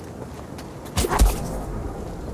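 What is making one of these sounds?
A heavy thud sounds as someone leaps onto a rock wall.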